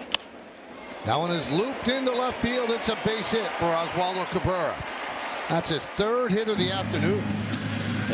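A stadium crowd cheers loudly.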